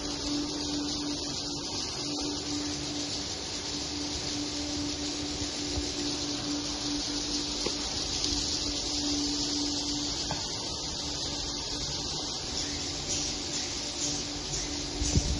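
Many small birds twitter and chirp in a dense, constant chorus.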